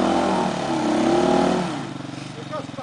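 A motorcycle engine revs loudly up close.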